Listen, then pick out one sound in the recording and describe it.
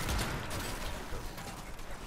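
A blast crackles with showering sparks.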